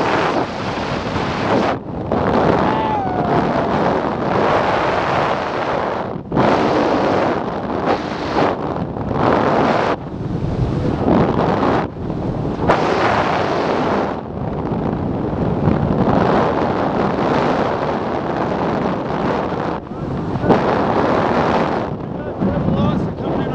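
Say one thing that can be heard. Strong wind roars and buffets loudly, outdoors in open air.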